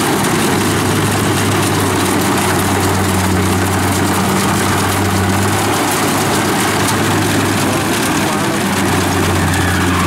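Rice stalks rustle and crackle as a combine harvester cuts through them.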